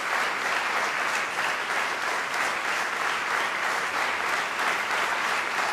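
An audience applauds steadily in a room.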